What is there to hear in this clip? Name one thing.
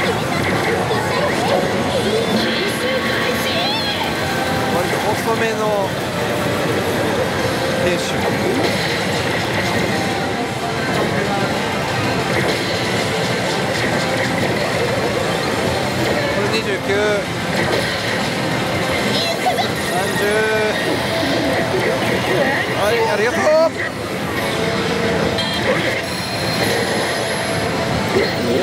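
A slot machine plays loud music and sound effects.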